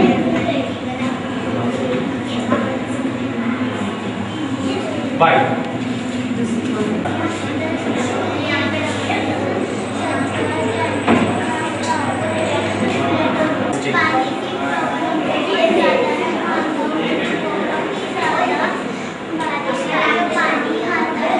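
Several men and women talk over one another nearby in a room.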